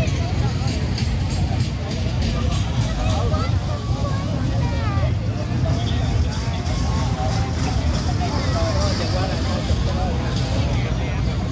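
A crowd of men, women and children chatters all around outdoors.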